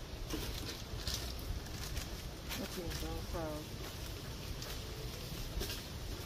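A plastic packet crinkles in a hand.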